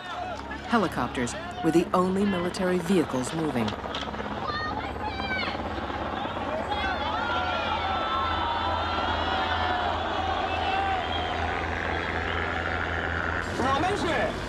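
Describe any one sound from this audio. Helicopters drone overhead with a steady low hum.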